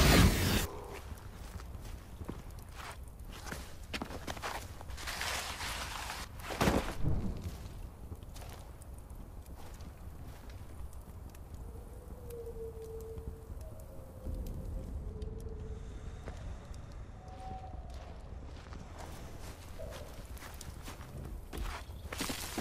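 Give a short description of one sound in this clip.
A burning torch crackles and hisses close by.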